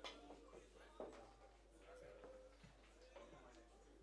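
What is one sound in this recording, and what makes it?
Pool balls click sharply together.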